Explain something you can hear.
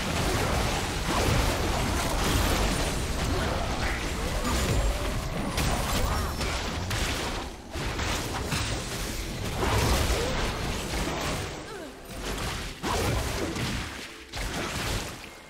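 Magic blasts and clashing weapons crackle and burst through a fast battle.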